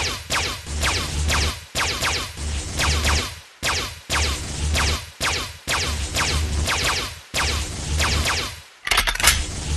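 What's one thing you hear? Rapid laser shots zap and crackle in quick bursts.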